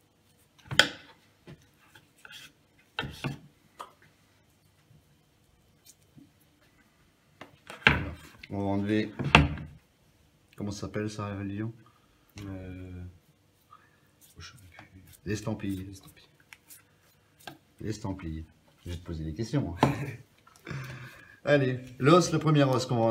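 A knife knocks and scrapes against a wooden cutting board.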